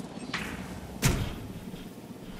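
A fence snaps into place.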